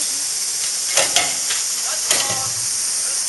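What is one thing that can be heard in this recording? Metal clanks sharply a few times.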